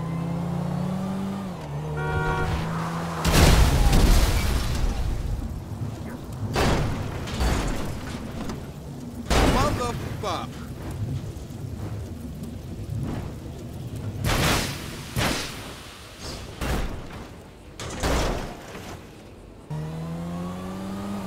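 A car engine hums steadily as it drives along.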